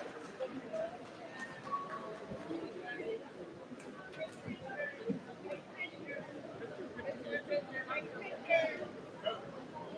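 People murmur and chatter in a large echoing hall.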